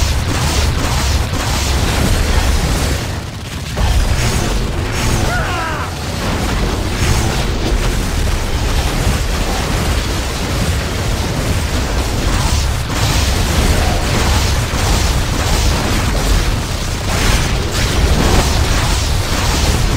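Blows and magical blasts whoosh and clash repeatedly.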